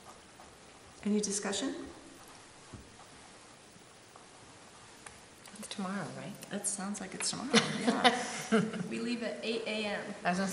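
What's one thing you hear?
A woman speaks calmly into a nearby microphone.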